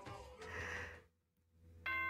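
A young woman speaks briefly and cheerfully into a microphone.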